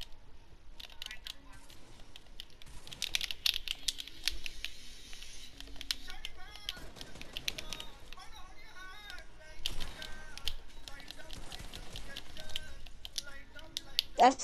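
Game building pieces snap into place in quick clicks.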